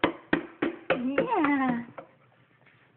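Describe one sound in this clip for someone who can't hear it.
A baby squeals briefly.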